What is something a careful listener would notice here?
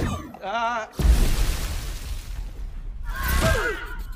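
A huge wave rushes and roars.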